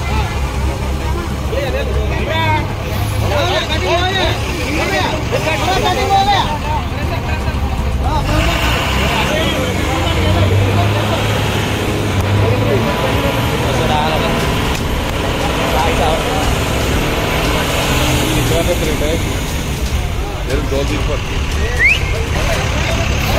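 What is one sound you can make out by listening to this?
Men talk with animation nearby, outdoors.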